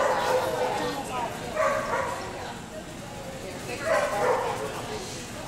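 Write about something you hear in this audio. A woman calls out short commands to a dog in a large echoing hall.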